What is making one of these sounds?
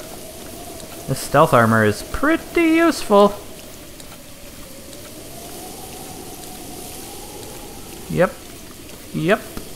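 Wind blows steadily across open grassland.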